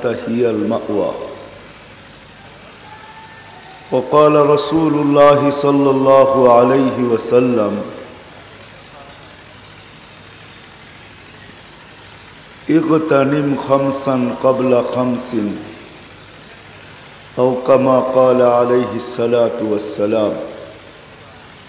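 An elderly man preaches loudly and with feeling into a microphone, in long drawn-out phrases with pauses between them.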